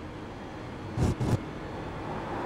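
Tyres rumble briefly over kerbs.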